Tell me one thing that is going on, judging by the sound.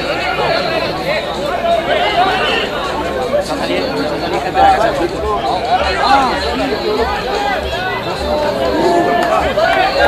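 Young men shout and call to each other across an open field.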